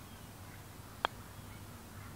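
A putter taps a golf ball with a sharp click.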